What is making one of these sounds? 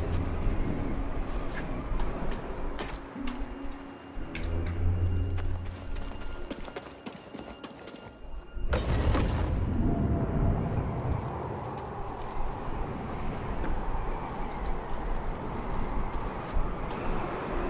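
Footsteps thud on stone as a game character runs.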